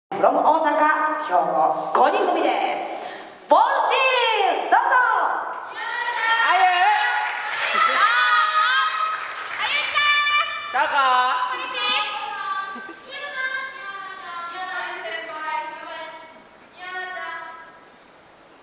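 A woman sings with vibrato through a microphone, ringing out in a large hall.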